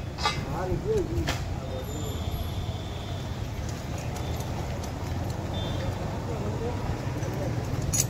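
Metal parts clink and scrape against a glass insulator.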